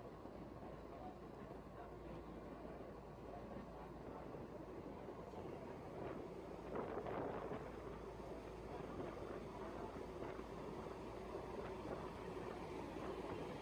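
A ferry's engine drones as it passes close by.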